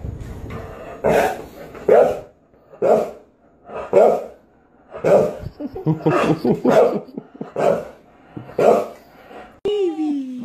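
A dog barks loudly and repeatedly close by.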